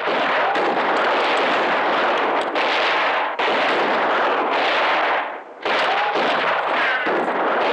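Gunshots crack and bullets strike the dirt.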